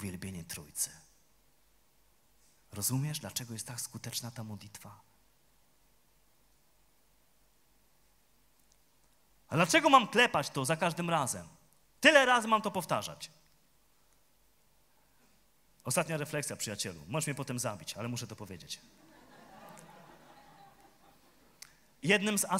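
A man speaks with animation into a microphone over loudspeakers, in a large hall.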